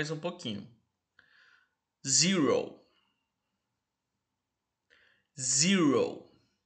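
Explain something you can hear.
A young man speaks calmly and clearly into a close microphone, pausing between words.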